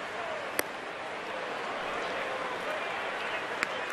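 A pitched baseball pops into a catcher's leather mitt.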